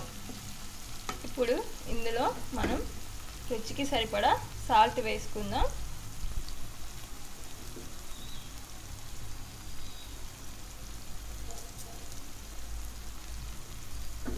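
Chopped tomatoes and onions sizzle in oil in a pan.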